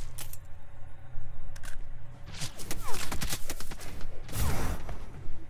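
A shimmering energy dome hums and whooshes.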